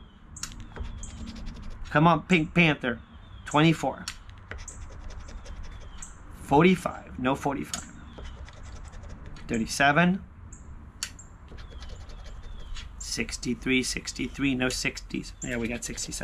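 A coin scratches across a paper ticket.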